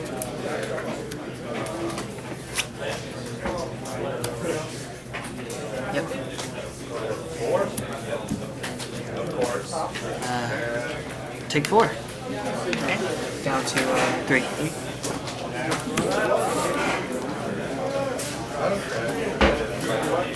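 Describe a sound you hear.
Playing cards tap and slide on a soft mat.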